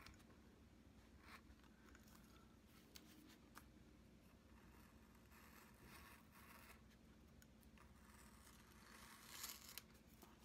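A craft knife scrapes and scratches across paper in short strokes.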